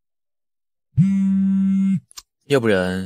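A phone gives a short electronic tone.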